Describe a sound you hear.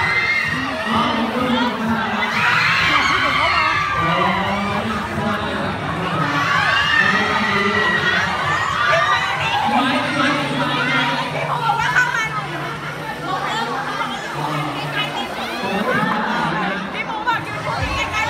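A crowd of young women chatter and squeal excitedly close by.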